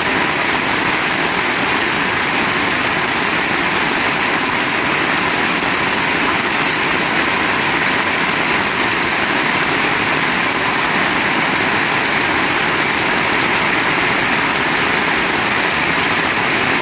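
Heavy rain pours steadily onto wet pavement outdoors.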